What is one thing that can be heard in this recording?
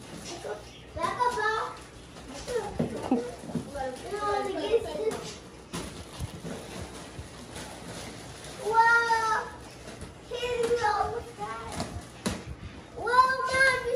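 A young child speaks excitedly close by.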